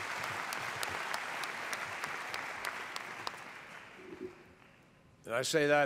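An audience applauds in a large hall, then the applause fades.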